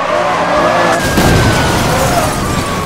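A car crashes with a loud metallic smash.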